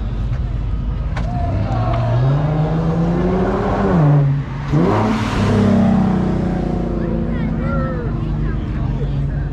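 A V6 sports coupe accelerates hard past.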